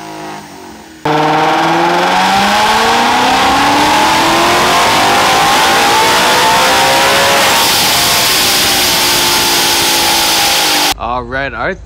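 A car engine revs hard and roars, climbing steadily in pitch.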